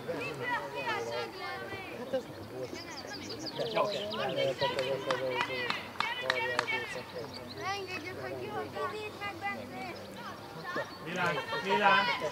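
Young children shout and call out to each other outdoors on an open field.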